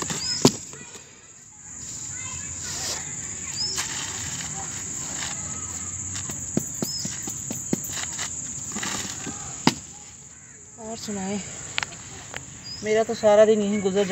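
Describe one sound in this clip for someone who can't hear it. Blocks of wet coal dust thud and scrape as a hand moves them.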